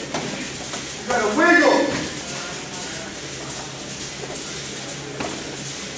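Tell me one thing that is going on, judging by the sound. Bodies thud and shuffle on a padded mat.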